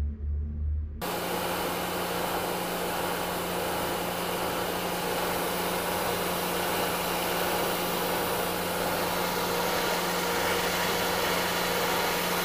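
A milling machine cuts metal with a steady, harsh grinding whir.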